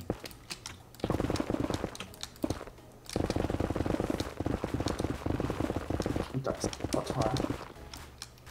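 A pickaxe chips rapidly at crumbly stone.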